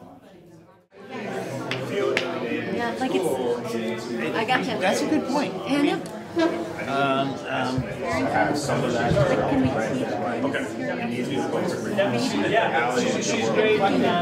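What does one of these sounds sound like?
Many people talk at once nearby in a busy room.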